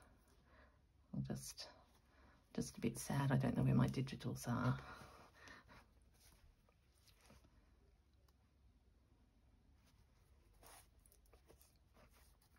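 Cloth rustles softly as hands handle it.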